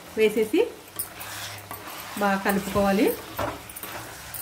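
A wooden spatula stirs and scrapes food in a clay pot.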